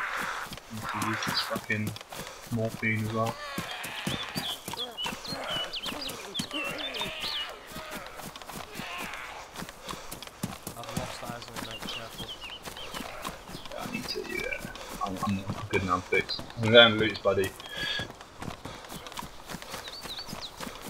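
Footsteps rustle through grass and crunch on gravel.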